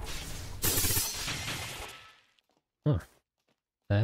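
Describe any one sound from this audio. A giant creature crashes heavily to the ground.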